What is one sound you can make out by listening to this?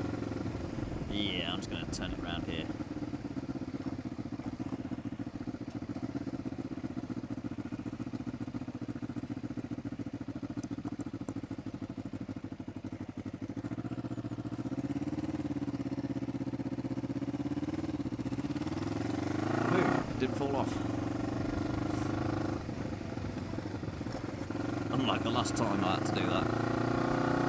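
A motorcycle engine hums steadily, rising and falling in pitch as it changes speed.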